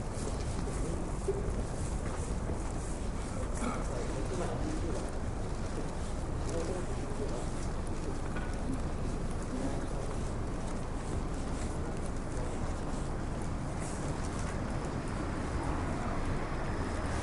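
A steady low city hum fills the air outdoors.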